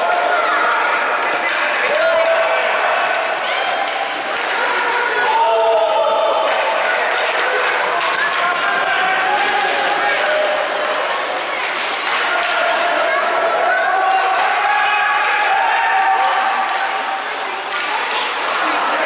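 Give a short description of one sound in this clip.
Spectators chatter and call out nearby in a large echoing rink.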